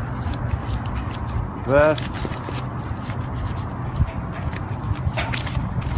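A marker squeaks and scratches across paper close by.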